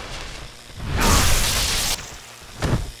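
A heavy blow lands with a loud thud.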